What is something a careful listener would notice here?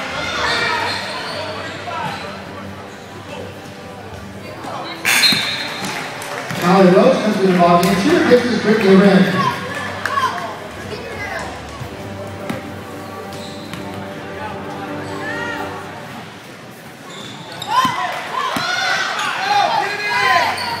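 A crowd of spectators murmurs and calls out in a large echoing gym.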